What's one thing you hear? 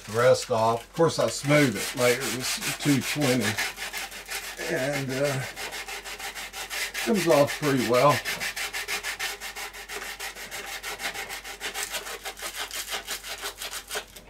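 Sandpaper scrapes back and forth in quick, steady strokes.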